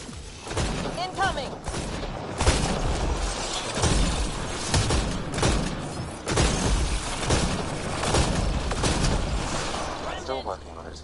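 Energy blasts explode with loud bangs.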